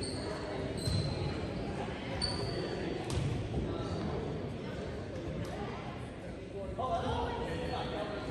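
A crowd of players and spectators chatters in a large echoing gym.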